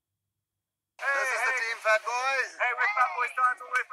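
A group of young men and women shout and cheer close by.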